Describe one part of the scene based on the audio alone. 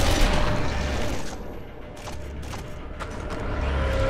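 Soft electronic whooshes and clicks sound as a menu opens and is browsed.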